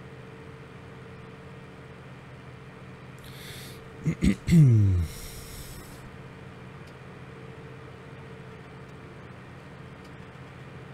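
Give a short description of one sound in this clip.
A truck engine hums steadily as it drives along a road.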